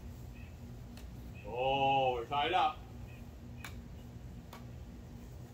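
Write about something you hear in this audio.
A badminton racket pings as it hits a shuttlecock outdoors.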